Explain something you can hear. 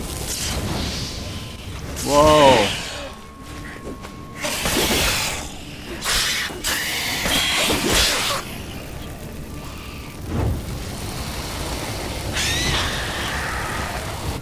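Sword blows clash and thud.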